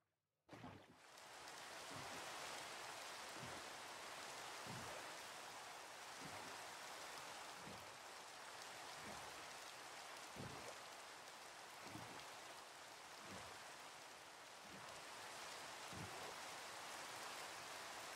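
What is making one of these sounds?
Rain falls steadily on water.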